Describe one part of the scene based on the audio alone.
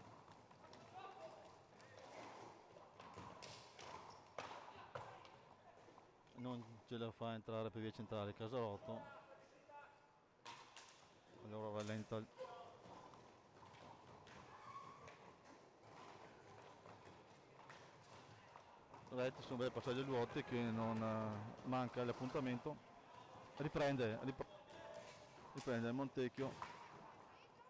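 Roller skates rumble across a hard floor.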